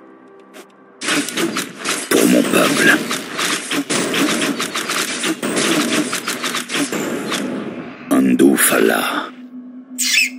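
Magic blasts crackle and crash in rapid bursts.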